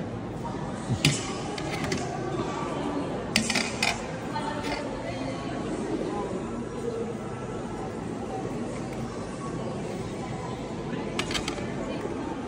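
A metal scoop clinks against a metal pan.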